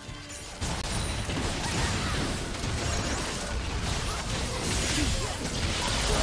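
Video game battle effects crackle and burst with magic blasts and clashing hits.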